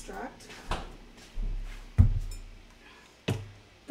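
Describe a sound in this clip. A bottle is set down on a wooden table with a thud.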